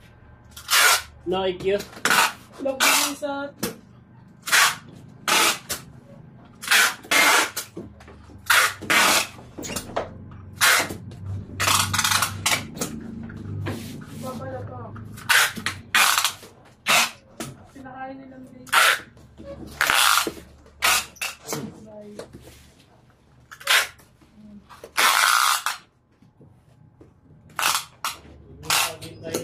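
Hands tap and rub against a cardboard box.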